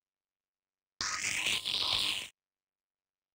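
A weapon fires with a short, sweeping electronic zap.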